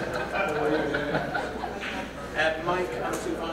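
Young women laugh together close by.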